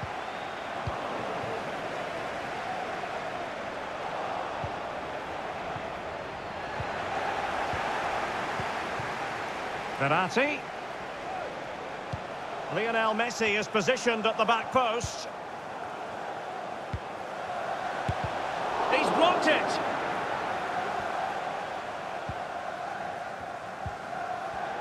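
A stadium crowd roars steadily, swelling and easing.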